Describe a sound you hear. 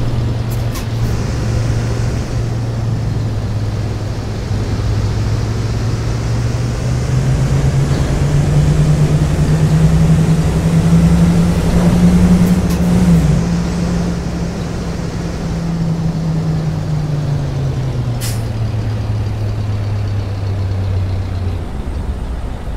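A bus engine hums low, revs higher, then eases down.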